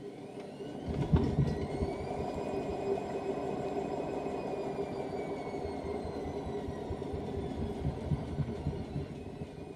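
A washing machine drum rumbles and thuds as it spins.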